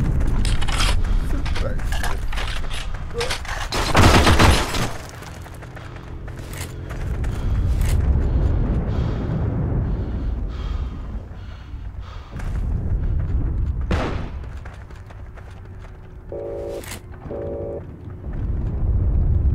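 Footsteps crunch over gravel.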